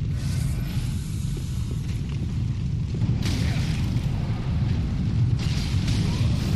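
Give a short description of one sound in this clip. Fireballs roar and burst with a fiery whoosh.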